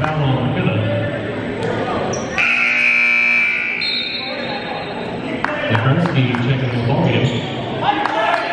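Men call out across a large echoing gym.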